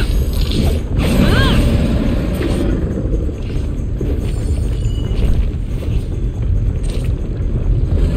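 Swords clash and swish in a fight.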